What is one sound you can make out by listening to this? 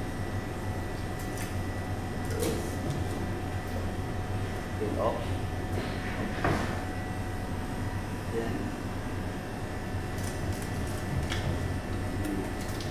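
A knife cuts through fish on a cutting board.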